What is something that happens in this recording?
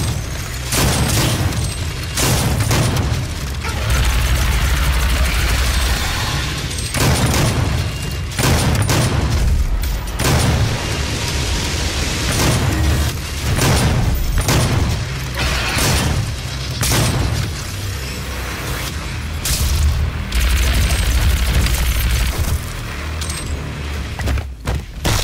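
A shotgun fires in loud blasts again and again.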